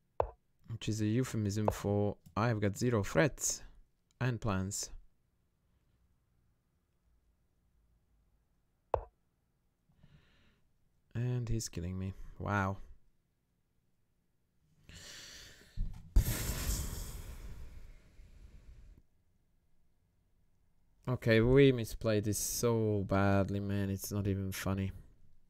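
A middle-aged man talks calmly, close to a headset microphone.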